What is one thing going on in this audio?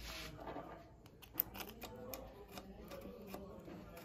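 Small metal parts click softly.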